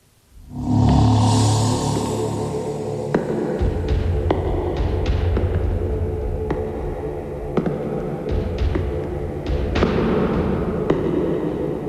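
Footsteps clack on a hard floor.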